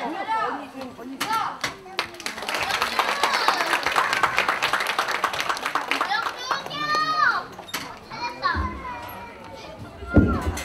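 A young child talks loudly close by in a large echoing hall.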